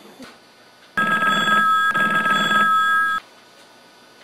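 A telephone rings loudly nearby.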